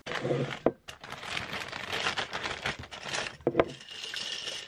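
Something knocks against glass.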